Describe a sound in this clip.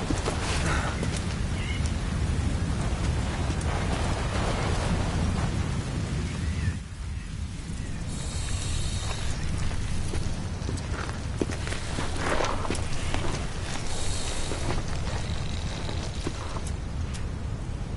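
Wind roars steadily outdoors.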